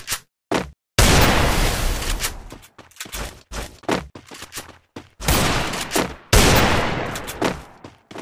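An ice wall bursts up with a loud whoosh.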